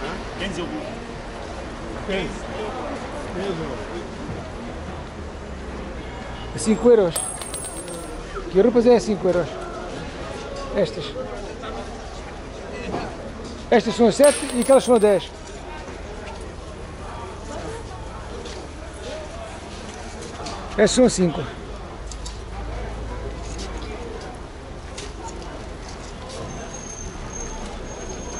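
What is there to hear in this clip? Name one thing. A busy outdoor market crowd murmurs in the background.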